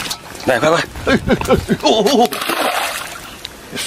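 A fish splashes into water.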